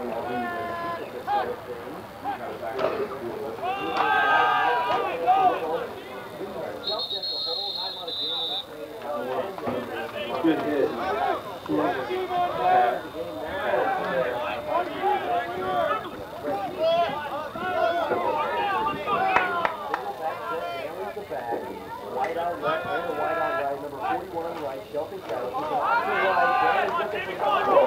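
Young men shout and call out outdoors.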